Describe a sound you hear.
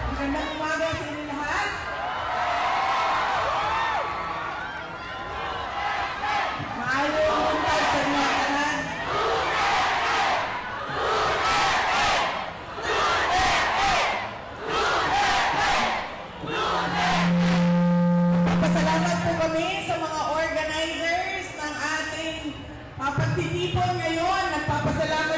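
A man sings loudly through a loudspeaker, echoing outdoors.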